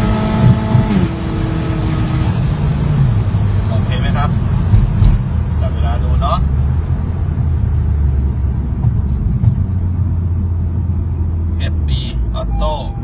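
A car engine drops in pitch as the car slows down.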